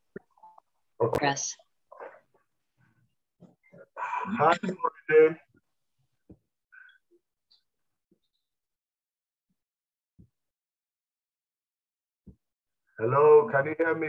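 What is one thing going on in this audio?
A man speaks calmly into a close headset microphone, heard over an online call, with pauses.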